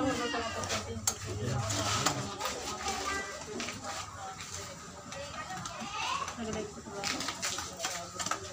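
Several women talk and laugh together close by.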